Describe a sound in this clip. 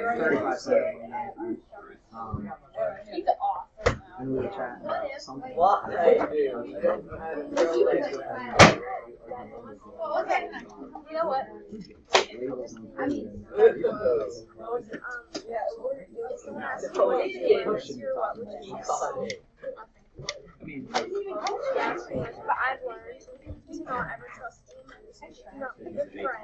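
A woman speaks calmly to a class.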